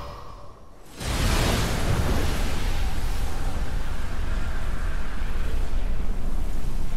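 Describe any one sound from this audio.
A deep, loud rumbling roar bursts out suddenly and keeps going.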